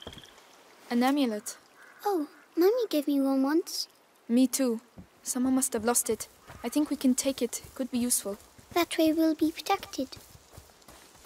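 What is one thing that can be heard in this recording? A young woman speaks calmly and clearly, close by.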